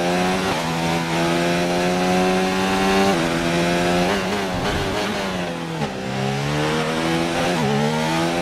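A racing car engine roars loudly, its pitch rising through the gears and dropping as it slows.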